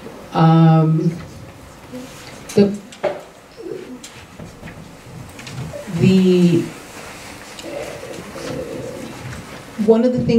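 A woman speaks haltingly into a microphone, heard through a loudspeaker.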